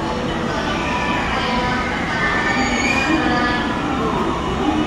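Train brakes squeal softly as the train slows.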